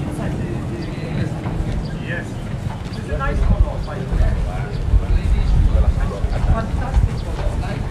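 Footsteps thud quickly on grass as several people jog.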